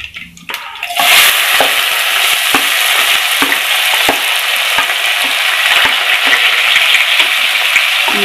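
Chopped onions hit hot oil and sizzle loudly.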